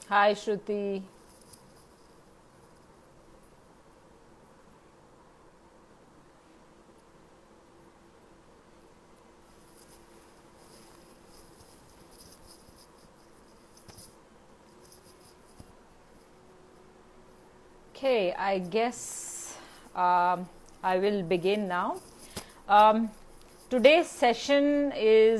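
A woman speaks calmly and clearly into a headset microphone.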